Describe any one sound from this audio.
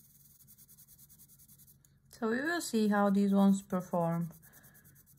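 A pencil scratches softly across paper in quick strokes.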